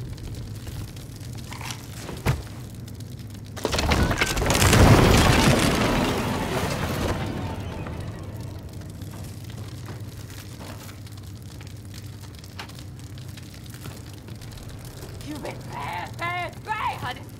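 Flames crackle and roar.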